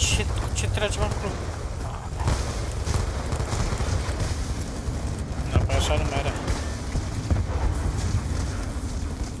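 Gunfire and explosions rumble steadily in the distance.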